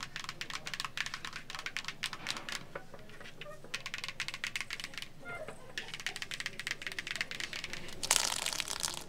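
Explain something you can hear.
Long fingernails tap and scrape across a hollow plastic globe.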